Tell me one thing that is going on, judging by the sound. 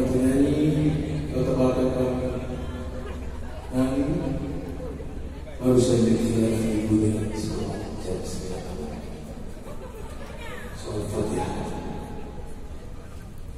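A singer's voice rings out over loud speakers in a large echoing arena.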